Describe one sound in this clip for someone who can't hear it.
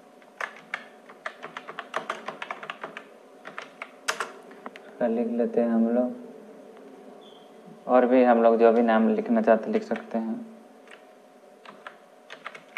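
Keys on a keyboard click in quick bursts of typing.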